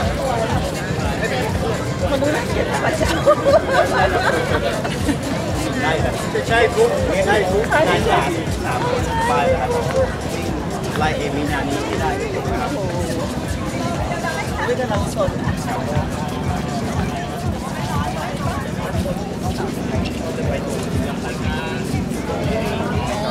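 Footsteps shuffle on pavement as a group walks.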